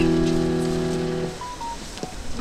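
A keyboard plays a sustained chord that stops abruptly.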